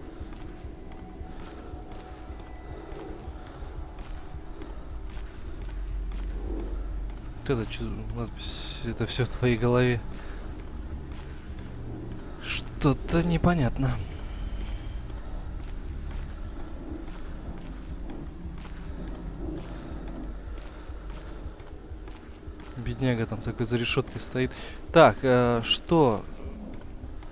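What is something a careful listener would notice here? A low, steady hum fills a large echoing hall.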